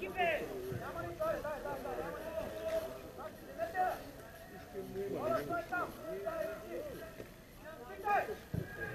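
Men talk nearby, outdoors in an open space.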